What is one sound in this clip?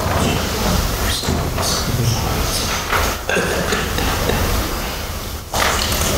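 A man speaks steadily through a microphone in an echoing hall.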